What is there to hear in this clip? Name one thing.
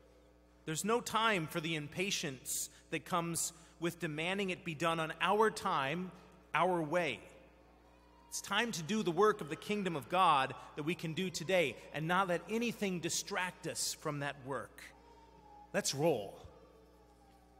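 A man reads aloud calmly through a microphone in a large echoing hall.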